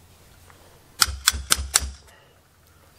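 A hammer taps sharply on metal several times.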